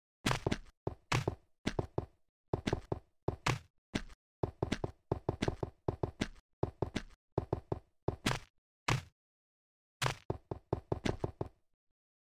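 Game blocks snap into place with quick, repeated clicks.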